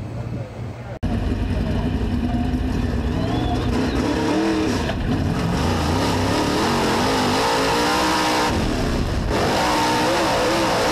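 A race car engine roars loudly from inside the car.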